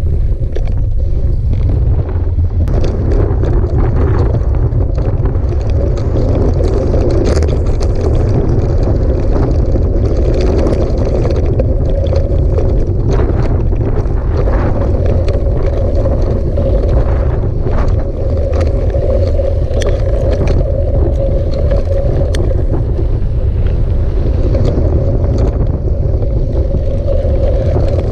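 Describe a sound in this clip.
Tyres crunch and rattle over loose gravel.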